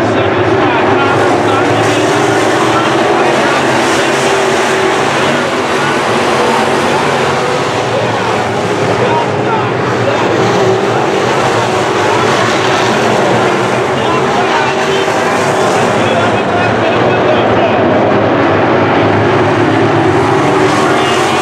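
Race car engines roar loudly as the cars race around a dirt track.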